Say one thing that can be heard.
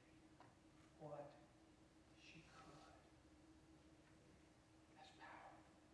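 An elderly man speaks calmly through a microphone in a large echoing hall, with pauses between phrases.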